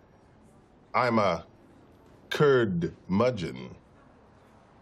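A man speaks firmly and deliberately, close by.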